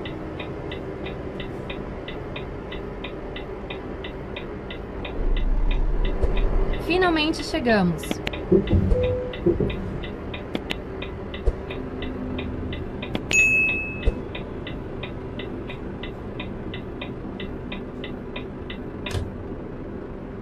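A truck's reversing alarm beeps in an even rhythm.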